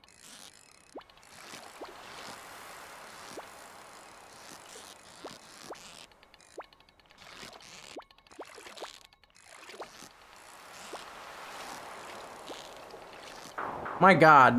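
A fishing reel whirs as a fish is reeled in.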